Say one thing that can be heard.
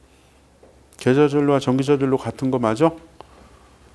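A middle-aged man speaks briefly through a microphone.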